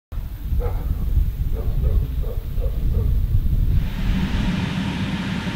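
Wind rumbles into the microphone outdoors.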